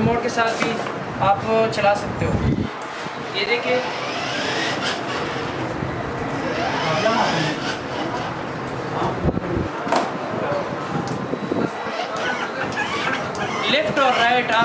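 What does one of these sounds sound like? A small electric ride-on car whirs as it rolls slowly across the floor.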